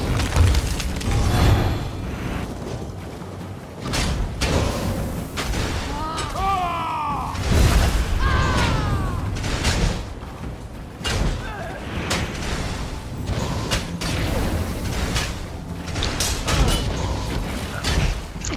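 Spell blasts and weapon strikes crack and thud in quick bursts.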